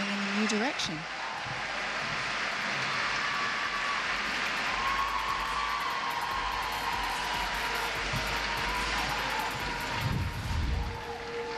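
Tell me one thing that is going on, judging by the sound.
A large crowd applauds in a big echoing arena.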